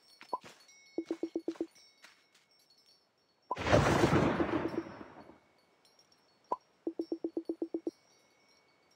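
Quick electronic blips chatter in short bursts.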